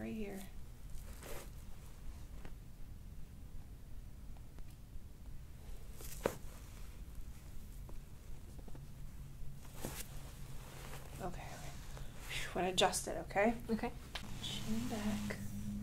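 Hands rub and press on skin with a soft rustle.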